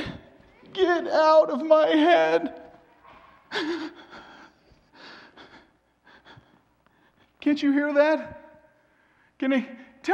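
A man cries out and wails in anguish.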